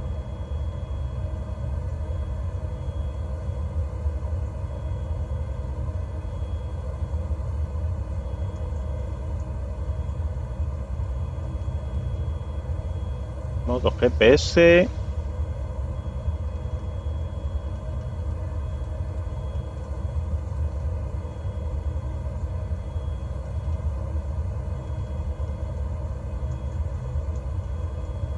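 An aircraft engine hums steadily at idle.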